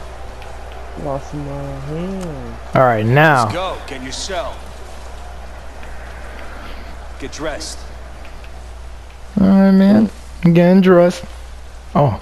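A man shouts stern orders nearby.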